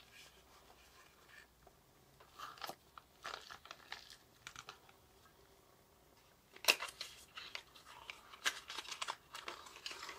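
A cardboard box taps and scrapes as it is handled.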